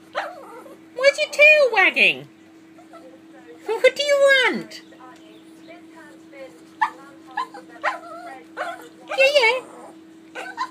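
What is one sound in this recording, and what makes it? A small dog whines in high, drawn-out cries that slide downward.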